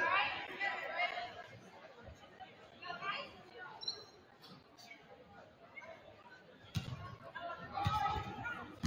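A crowd of spectators chatters and calls out in the background.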